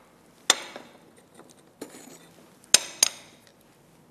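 Glass bottles clink sharply against each other and a hard surface.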